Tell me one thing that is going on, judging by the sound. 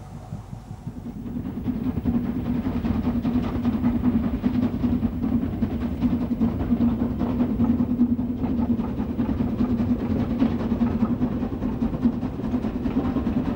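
A distant steam locomotive chugs steadily as it pulls its train uphill.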